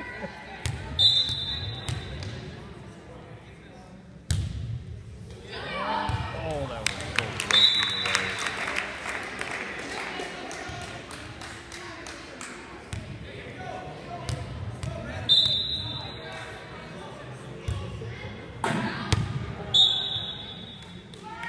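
A referee blows short sharp whistle blasts.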